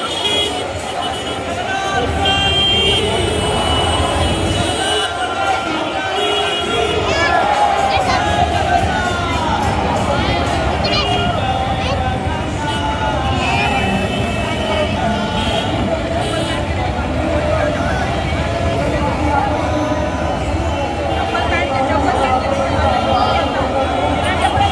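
A large crowd of men and women chatters and calls out loudly outdoors.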